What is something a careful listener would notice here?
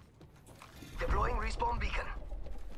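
A man talks excitedly into a close microphone.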